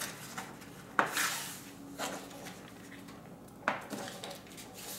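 A sheet of paper is pressed and smoothed against a board with soft thumps.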